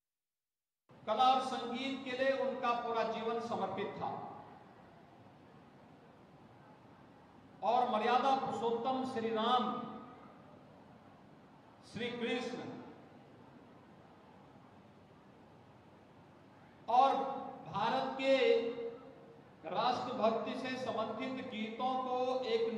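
A man speaks loudly into a microphone in short bursts.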